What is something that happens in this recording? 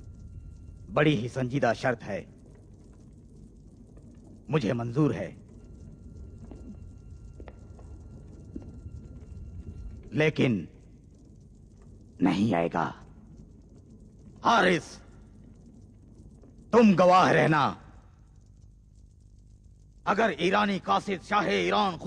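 An elderly man speaks gravely, in short bursts with pauses.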